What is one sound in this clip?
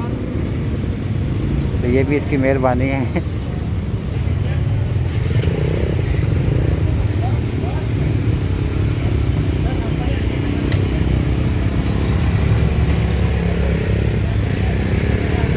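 A knife cuts into the firm flesh of a pineapple outdoors.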